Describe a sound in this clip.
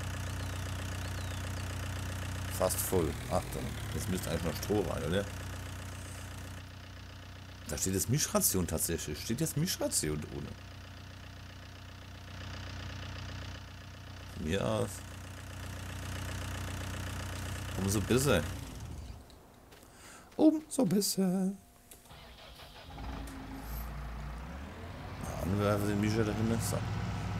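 A tractor engine idles with a low, steady hum.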